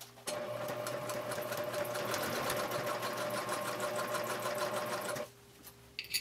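A sewing machine whirs and clicks rapidly as it stitches.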